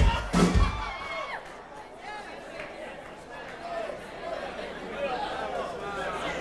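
A crowd cheers and whistles.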